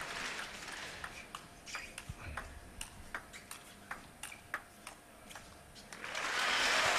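A ping-pong ball clicks back and forth on the table and paddles.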